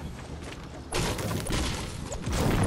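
A pickaxe strikes a wooden wall with a sharp thwack.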